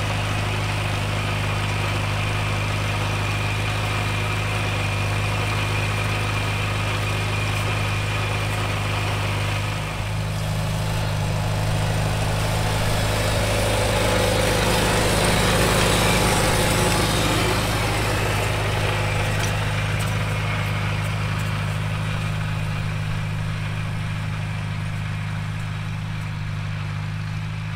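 A small tractor engine chugs steadily close by.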